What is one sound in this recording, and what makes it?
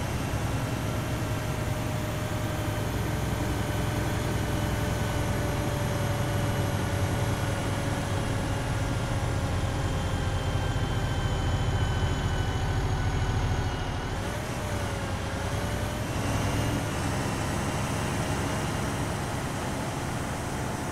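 An armoured vehicle's engine rumbles steadily as it drives along.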